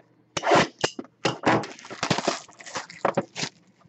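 Plastic wrapping crinkles and rustles as it is pulled off a box.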